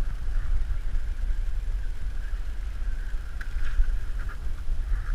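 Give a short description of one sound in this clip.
Wind buffets loudly, outdoors on open water.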